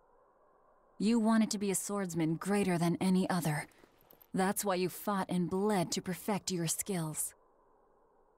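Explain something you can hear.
A young woman speaks earnestly and close.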